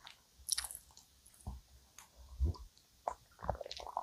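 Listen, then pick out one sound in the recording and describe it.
A young woman sips a drink close to a microphone.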